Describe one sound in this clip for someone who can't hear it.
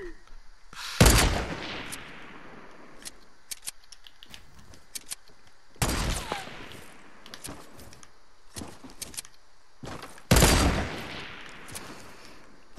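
Loud gunshots boom one at a time, each trailing off in a rumble.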